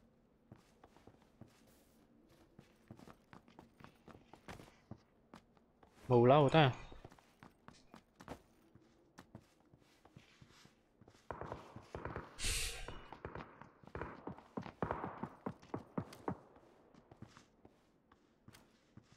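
Footsteps tap quickly on a hard floor.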